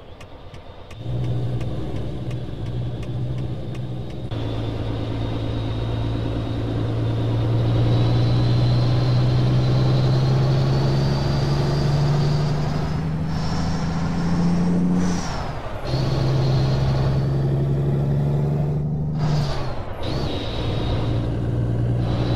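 A heavy truck engine drones steadily, its pitch climbing and dropping as it shifts gears.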